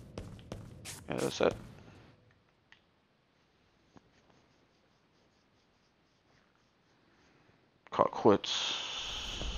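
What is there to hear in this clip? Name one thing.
A young man talks briefly and casually into a microphone.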